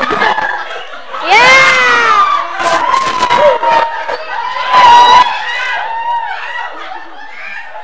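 A group of young people laugh loudly together.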